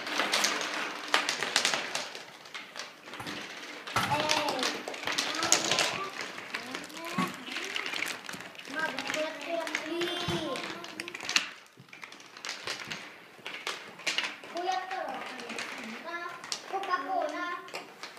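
Plastic bottle caps click and tap on a wooden table.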